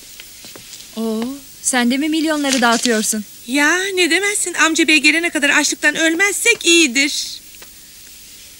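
A woman talks calmly up close.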